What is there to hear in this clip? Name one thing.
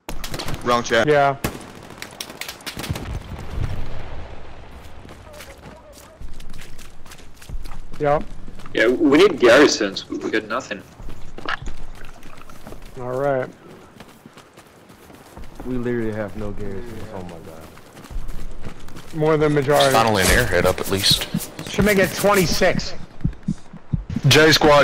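Gunshots crack repeatedly across a battlefield.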